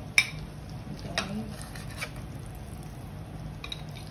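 A metal spatula scrapes and taps a frying pan.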